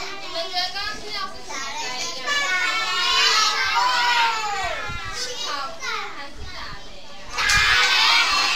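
A young woman speaks to the children in a raised voice.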